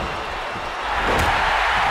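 A body slams onto a wrestling ring canvas.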